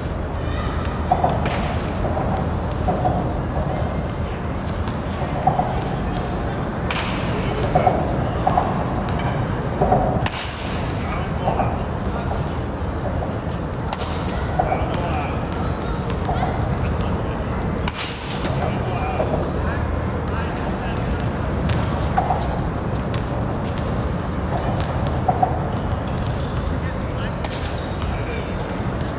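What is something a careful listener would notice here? A bat cracks against a baseball again and again.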